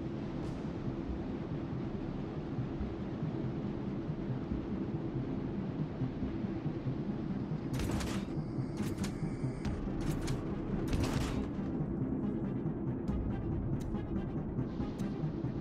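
A large ship's engine rumbles low and steadily.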